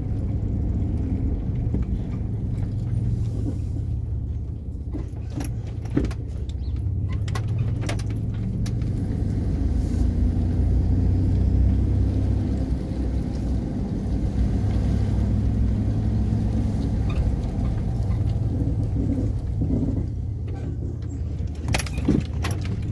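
A car engine hums low and steady while driving slowly.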